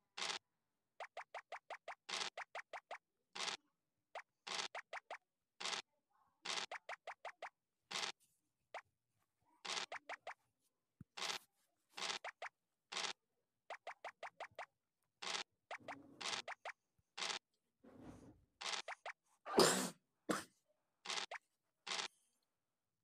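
Game pieces click as they hop across the board.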